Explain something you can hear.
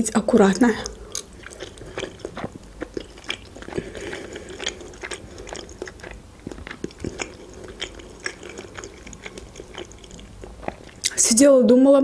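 A young woman chews food with soft, wet mouth sounds.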